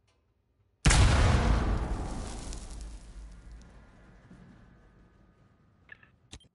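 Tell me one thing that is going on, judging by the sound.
A loud explosion booms and slowly rumbles away.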